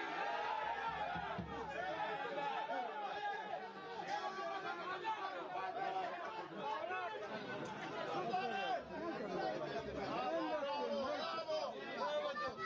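Men shout and call out outdoors across an open field.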